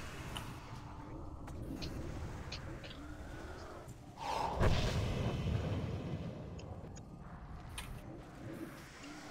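Magic spells crackle and boom in a fierce battle.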